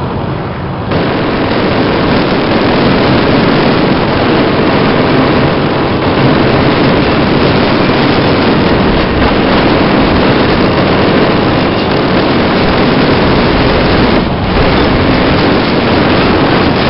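Tank tracks clank and rumble.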